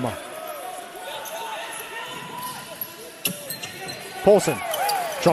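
Sneakers squeak sharply on a hard court floor in an echoing hall.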